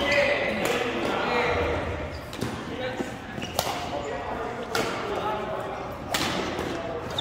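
Badminton rackets strike a shuttlecock with sharp pops in an echoing hall.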